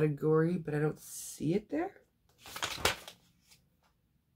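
Paper pages rustle close by.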